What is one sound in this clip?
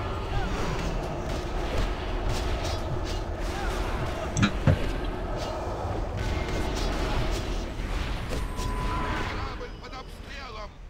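Spell effects crackle and burst during a game battle.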